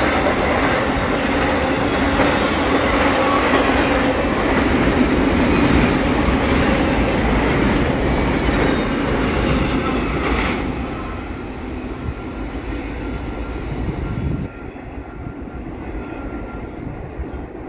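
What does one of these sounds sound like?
A freight train rumbles and clatters past close by, then fades into the distance.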